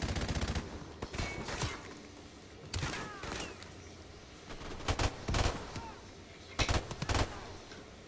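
Loud gunshots boom one by one.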